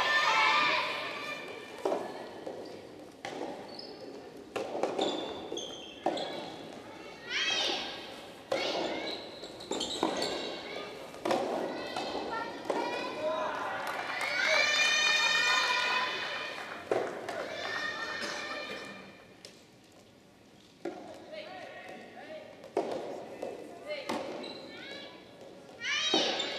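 Young women shout and cheer with animation in a large echoing hall.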